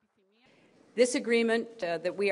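A woman speaks calmly and clearly into microphones.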